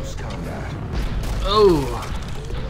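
An explosion booms with a low rumble.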